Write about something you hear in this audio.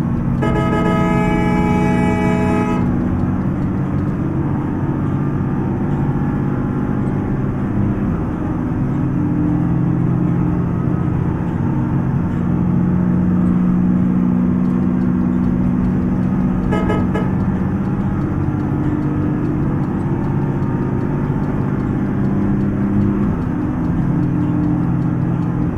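A bus engine drones steadily, rising and falling in pitch as it drives.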